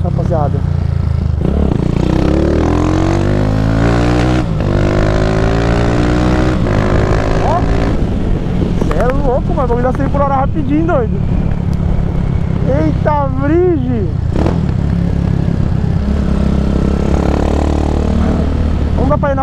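A motorcycle engine rumbles steadily and revs up as the bike speeds along.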